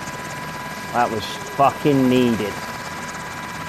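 A man speaks in short, gruff phrases.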